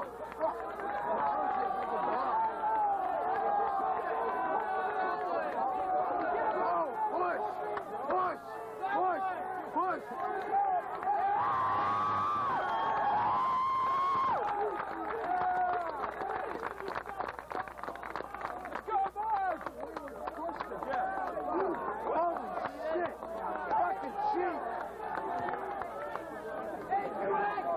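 A large crowd of young men and women chatters and shouts outdoors.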